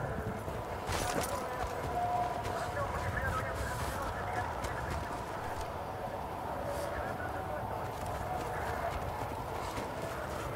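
Wind howls steadily in a snowstorm.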